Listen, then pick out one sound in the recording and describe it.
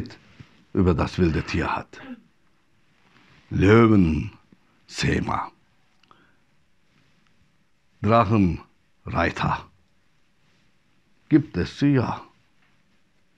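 A middle-aged man speaks slowly and deliberately into a clip-on microphone, with long pauses between phrases.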